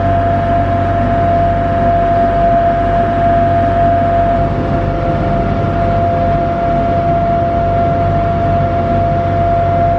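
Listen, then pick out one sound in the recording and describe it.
Water churns and splashes behind a moving boat.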